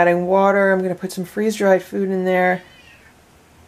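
A cat yowls loudly close by.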